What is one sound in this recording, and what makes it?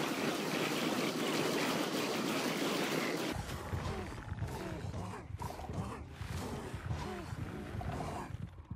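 Many metal creatures clank and thud as they are struck in quick succession.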